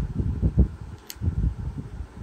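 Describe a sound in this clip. A small plastic card taps lightly onto a hard surface.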